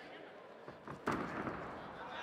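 Bodies thud onto a mat.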